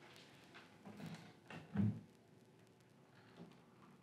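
A door lock rattles and clicks.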